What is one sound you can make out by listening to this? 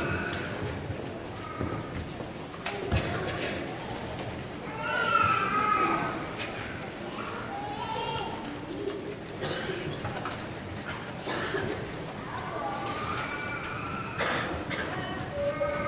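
A woman speaks calmly through a microphone in a large echoing hall.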